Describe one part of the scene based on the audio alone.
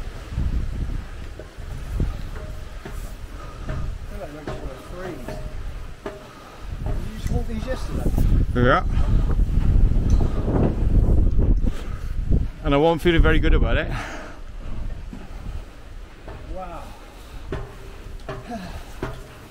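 Boots clatter on metal steps and grating.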